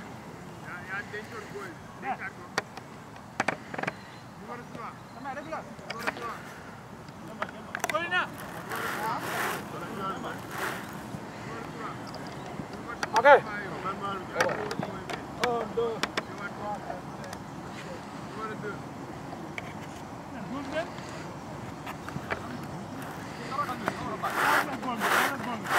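Young men shout and call out to each other across an open field outdoors.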